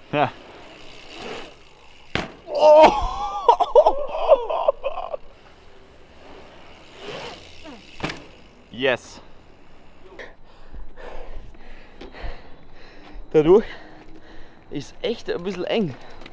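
Bicycle tyres roll over concrete.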